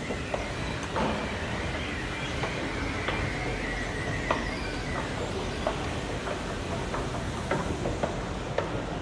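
An escalator rumbles steadily.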